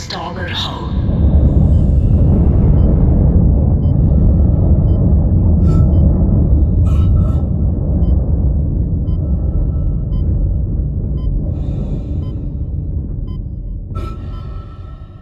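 A loud explosion bursts and rumbles deeply.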